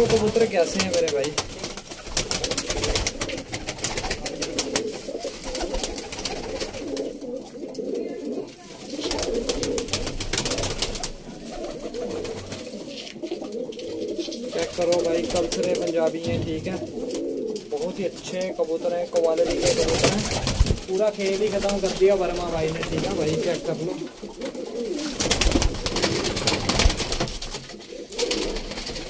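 Pigeons coo softly and steadily nearby.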